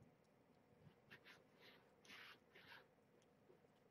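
A kitten mews faintly.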